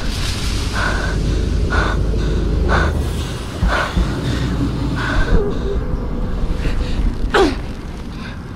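Heavy boots clank slowly on metal steps.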